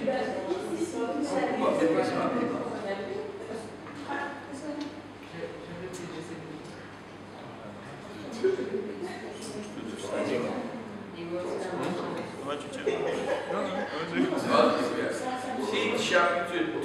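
An elderly man speaks calmly and steadily, as if giving a talk, in a room with a slight echo.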